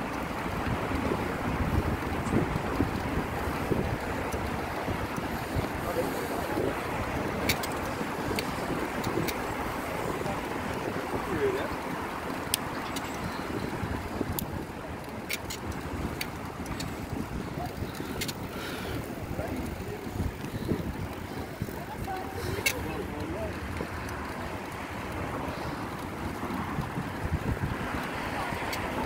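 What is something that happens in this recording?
Small wheels roll and rumble over pavement.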